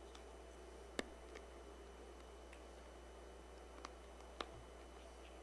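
Hands knock softly against a wooden lectern.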